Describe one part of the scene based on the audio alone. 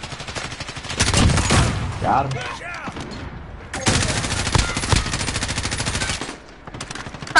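Rifle gunfire rattles in rapid bursts.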